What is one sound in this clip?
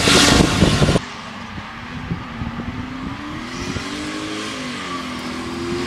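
A car engine revs hard in the distance.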